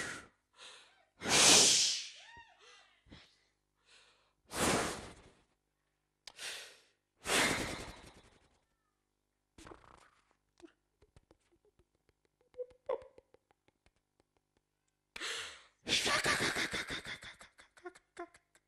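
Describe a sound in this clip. A man breathes heavily and sighs into a microphone.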